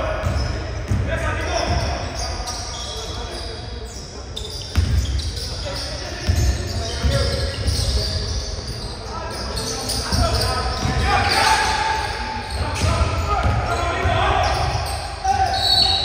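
A basketball thuds on the floor.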